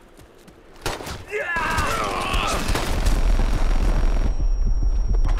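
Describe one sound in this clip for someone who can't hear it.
Gunfire bursts rapidly and loudly.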